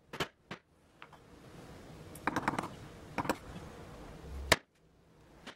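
A chisel pares and scrapes through wood.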